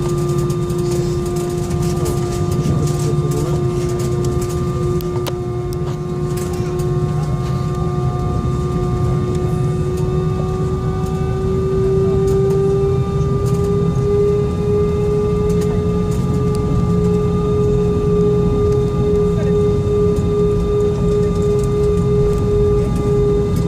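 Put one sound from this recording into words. A jet engine roars loudly with a steady whine that slowly rises in pitch.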